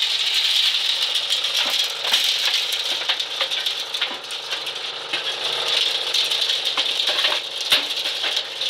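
Dry corn kernels clatter and patter as they fall.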